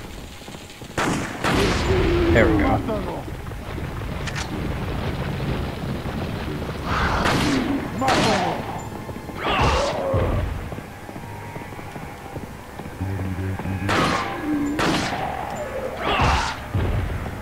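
Gunshots boom and ring out, a few at a time, with a short echo.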